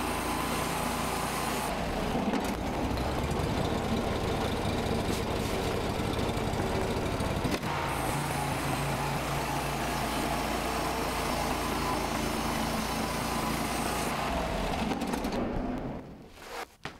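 An engine-driven portable band sawmill cuts through a white oak log.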